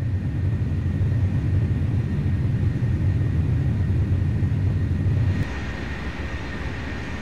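Jet engines roar steadily with a deep rumble.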